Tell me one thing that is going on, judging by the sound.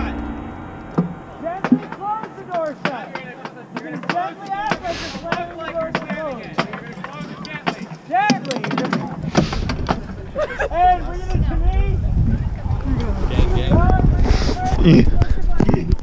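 A crowd of people chatter and call out outdoors.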